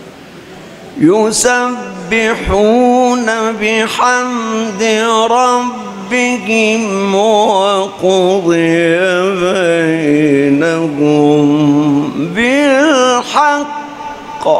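An elderly man chants melodically into a microphone, his voice wavering.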